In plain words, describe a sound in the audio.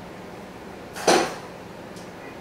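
A small glass knocks against a tall glass.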